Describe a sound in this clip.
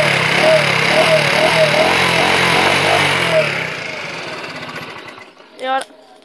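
A scooter engine revs loudly close by and then dies away.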